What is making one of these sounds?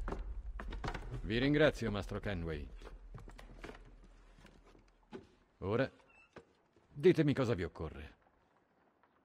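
A second man answers calmly, close by.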